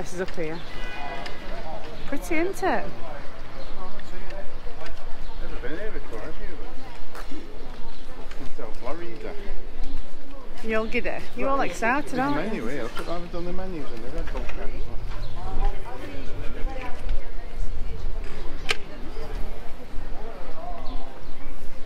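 A man talks nearby in a relaxed, chatty way.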